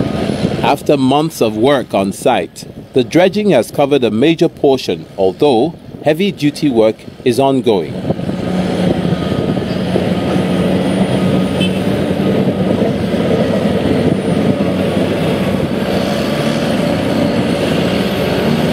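Bulldozer engines rumble steadily.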